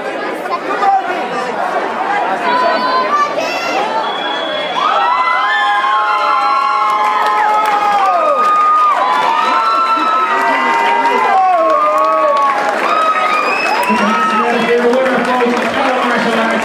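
A crowd murmurs and chatters in a large room.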